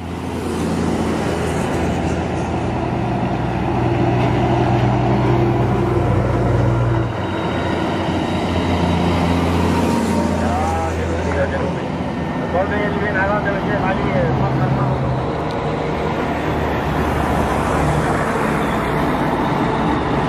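Heavy armoured trucks rumble past with deep droning engines.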